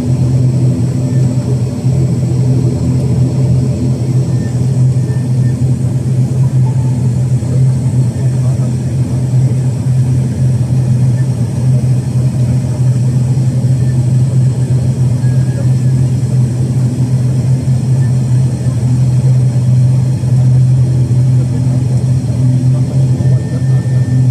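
A propeller engine drones loudly and steadily close by.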